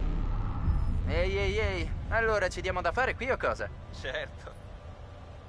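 A young man calls out with animation.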